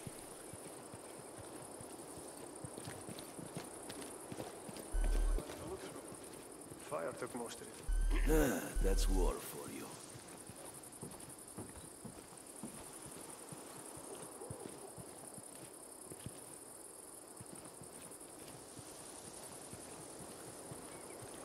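Footsteps rustle softly through grass and gravel.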